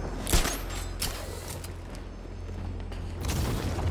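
Footsteps run across a hard floor.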